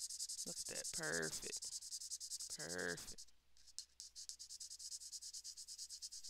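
A colored pencil scratches across paper in quick back-and-forth strokes.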